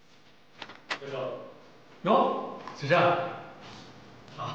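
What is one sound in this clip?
A young man speaks up nearby.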